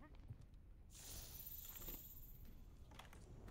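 A magical sparkle shimmers and hisses.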